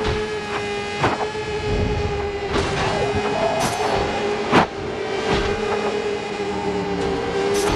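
A small car's engine hums steadily at high revs as it races along.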